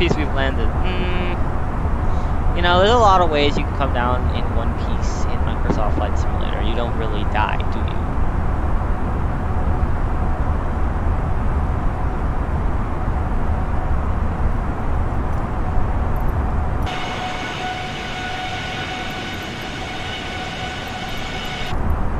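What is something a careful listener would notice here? Jet engines drone steadily in flight.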